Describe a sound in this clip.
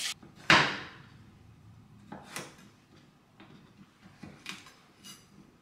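A knife chops through pumpkin onto a wooden board with sharp knocks.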